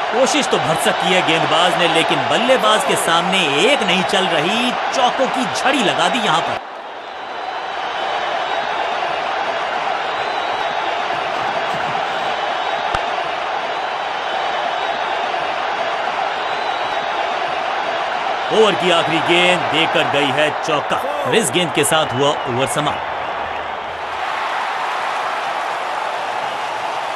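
A large crowd roars steadily in a big stadium.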